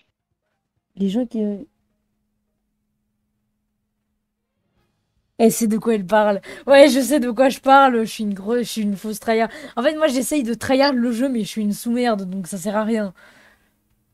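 An older woman talks with animation close to a microphone.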